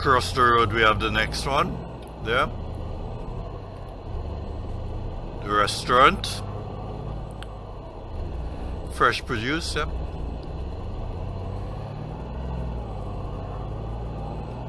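A pickup truck engine hums steadily as it drives.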